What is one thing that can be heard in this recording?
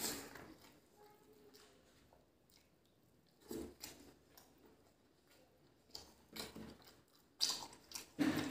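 Fingers squish and scrape through food on a plate.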